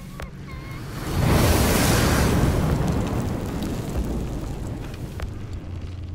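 A sudden burst of crackling sparks rushes out and slowly fades.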